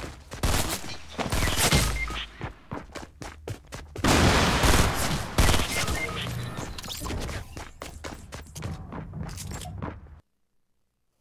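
Gunshots ring out in loud, quick bursts.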